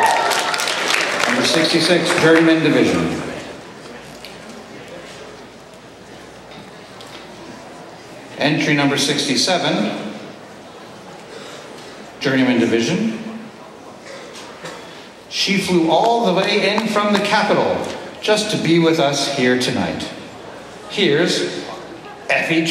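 A man speaks through a microphone with pauses, in an echoing hall.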